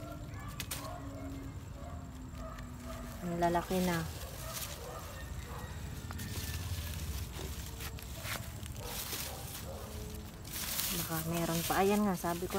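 Leaves rustle close by.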